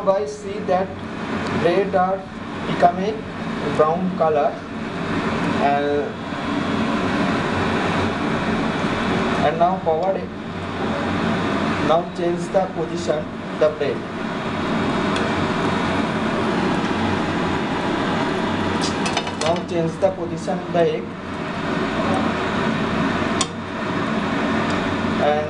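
Food sizzles steadily in a hot frying pan.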